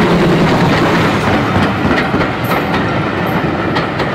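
Train wheels clatter rhythmically over rail joints.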